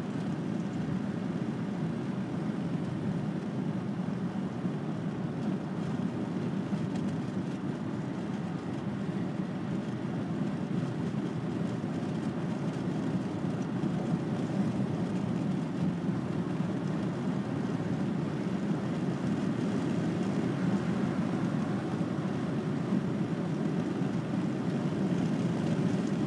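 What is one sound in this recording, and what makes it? A car's engine and tyres rumble steadily, heard from inside the car.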